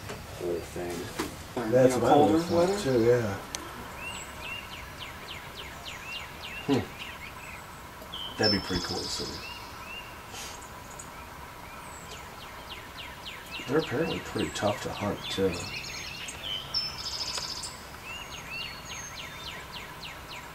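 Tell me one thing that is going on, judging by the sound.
Birds chirp and sing in the trees.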